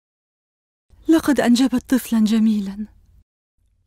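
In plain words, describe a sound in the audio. A young woman speaks in a distressed, pleading voice close by.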